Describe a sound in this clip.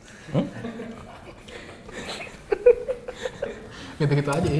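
Two young men laugh heartily close by.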